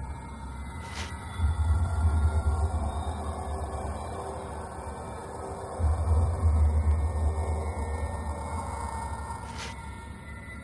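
A short menu click sounds as a page turns.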